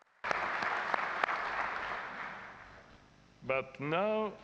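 A small crowd applauds in a large echoing hall, then fades.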